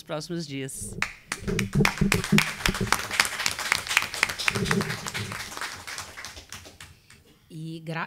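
A group of people applaud in a room.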